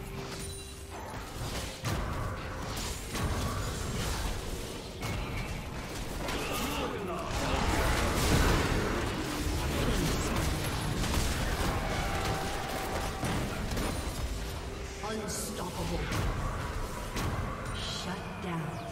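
Spell blasts, hits and explosions from a video game clash and burst rapidly.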